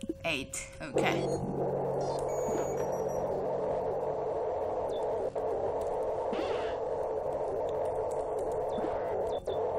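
A low electronic hum drones steadily.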